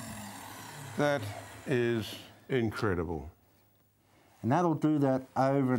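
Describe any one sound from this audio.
A man speaks with animation into a microphone.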